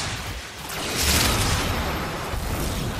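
A gun fires a loud blast.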